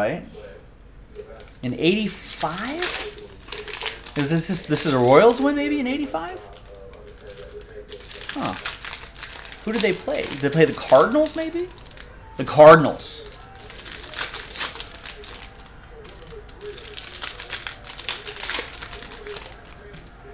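Foil card wrappers crinkle and tear as they are opened.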